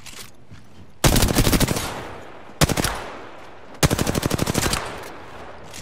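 Rapid bursts of automatic gunfire rattle loudly.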